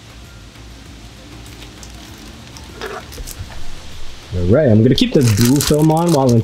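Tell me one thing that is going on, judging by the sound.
Plastic wrapping crinkles and rustles as it is handled.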